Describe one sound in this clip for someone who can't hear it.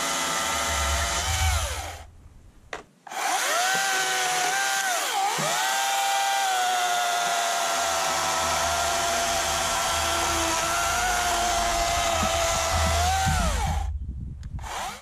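A chainsaw whines steadily as it cuts through a log, pausing briefly.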